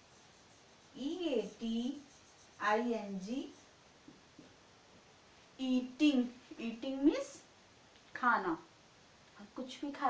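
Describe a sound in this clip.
A woman speaks slowly and clearly, close by, in short phrases.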